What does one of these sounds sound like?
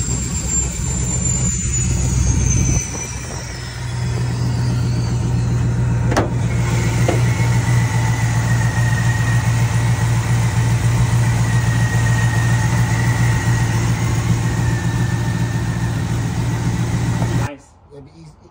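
A car engine idles with a steady, deep rumble.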